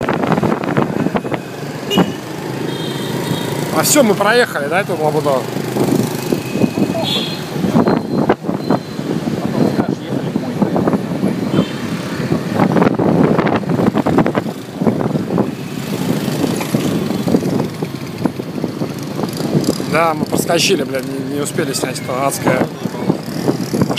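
Motorbike engines hum steadily on a street at night.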